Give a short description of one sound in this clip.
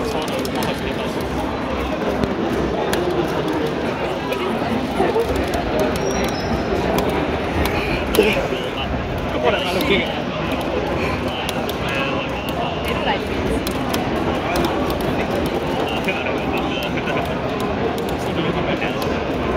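A fighting video game plays loudly through a television's speakers.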